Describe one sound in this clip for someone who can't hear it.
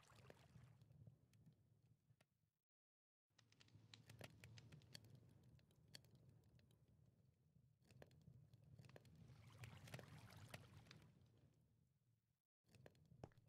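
Fires crackle softly.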